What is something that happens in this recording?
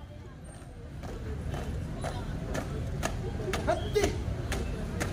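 Young performers clap their hands in sharp bursts.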